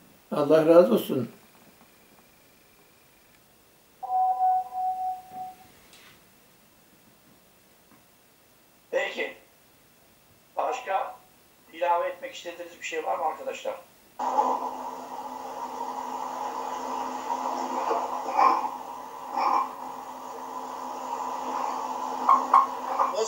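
An elderly man speaks calmly and close, as if heard over an online call.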